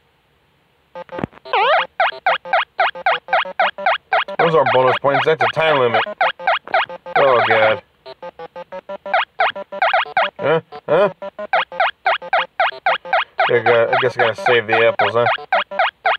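Bright electronic game music plays in quick, bouncy beeping notes.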